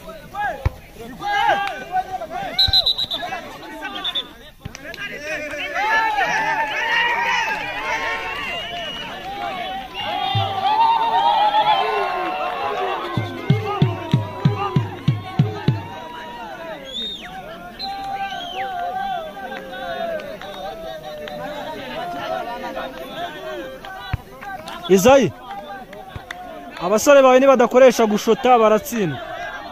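A crowd of young men shouts and talks outdoors.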